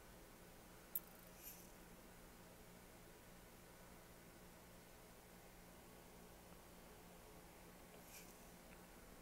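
A soft interface click sounds.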